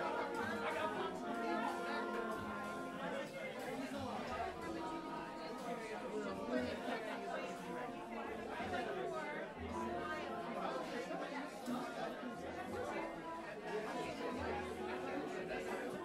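A piano plays a slow melody.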